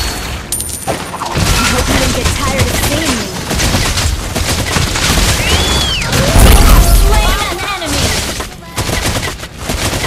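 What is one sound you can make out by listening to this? Game spell effects crackle and whoosh in quick bursts.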